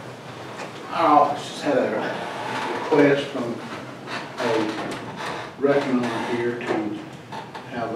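An elderly man speaks calmly from close by.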